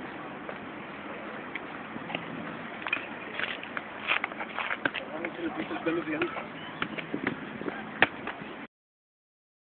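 Footsteps scuff on pavement outdoors.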